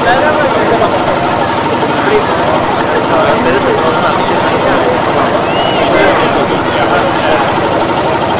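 A crowd of men chatter and call out nearby outdoors.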